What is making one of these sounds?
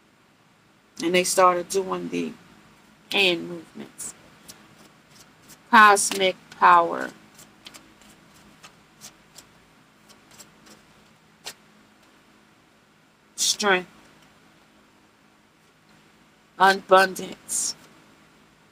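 A woman speaks close by, calmly and expressively.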